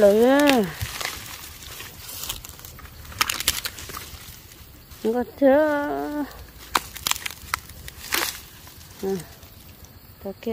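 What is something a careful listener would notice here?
Dry leaves and stems rustle and crackle as a hand pushes through undergrowth.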